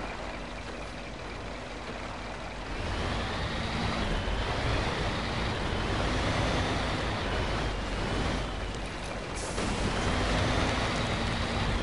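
Truck tyres crunch over a dirt road.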